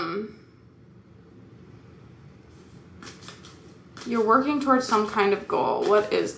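Playing cards rustle and flick as they are shuffled.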